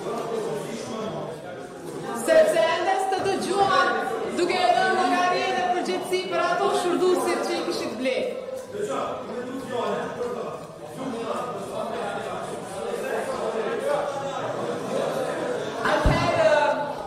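A woman speaks steadily into a microphone in a large echoing hall.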